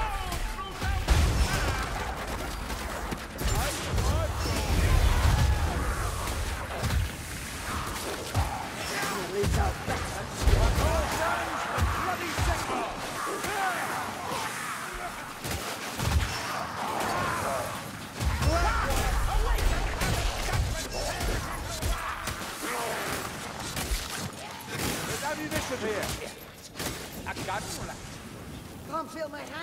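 Blades clash and hack into creatures again and again.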